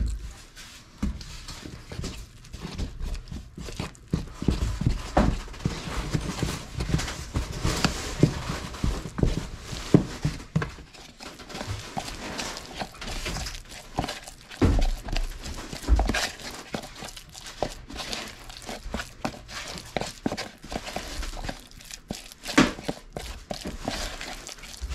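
A wooden stick stirs and scrapes a wet mixture in a plastic tub.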